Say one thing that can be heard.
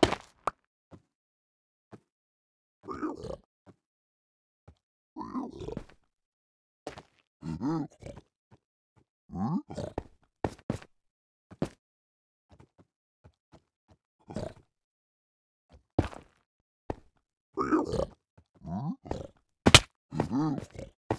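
A pickaxe chips and knocks at stone blocks in sharp, short taps.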